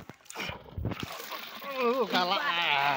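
Fish splash into water as they are poured from a bucket.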